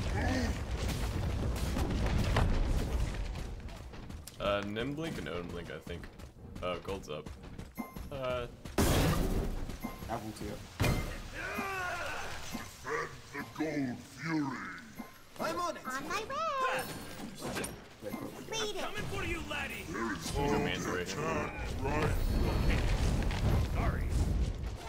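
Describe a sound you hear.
Game sound effects whoosh and thump in the background.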